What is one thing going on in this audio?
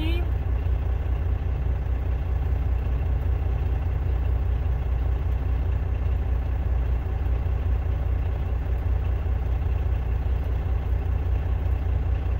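A car rumbles steadily as it drives.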